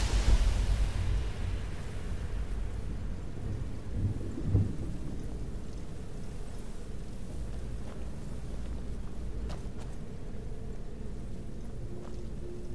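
Footsteps walk slowly across a stone floor.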